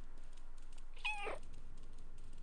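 A cat meows once with a falling cry.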